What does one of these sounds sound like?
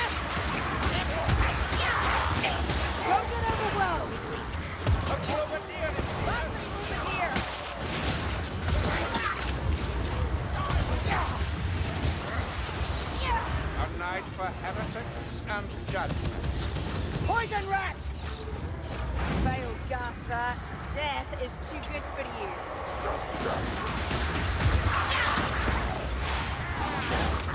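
Monsters snarl and shriek in a crowd.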